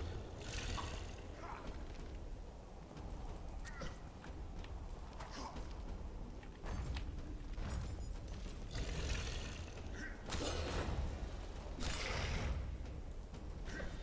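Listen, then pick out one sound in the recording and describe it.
A creature snarls and growls.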